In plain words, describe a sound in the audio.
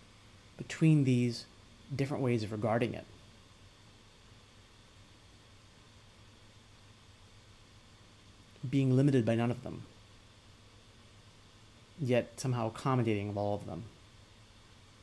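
A man speaks calmly and close up, in short bursts with long pauses.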